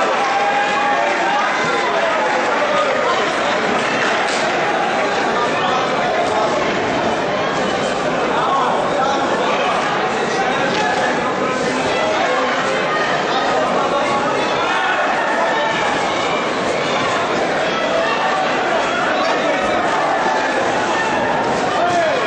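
A crowd murmurs and calls out throughout a large echoing hall.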